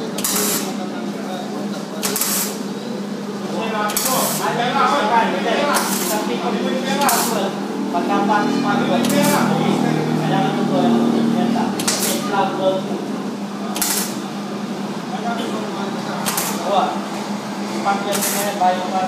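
An electric welding arc crackles and hisses steadily.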